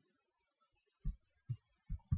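Dirt blocks break with short, dull thuds.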